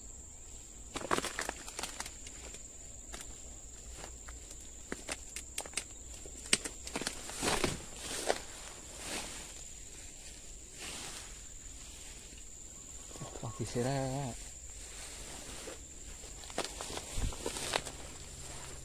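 Leaves rustle and twigs crackle as someone pushes through dense undergrowth.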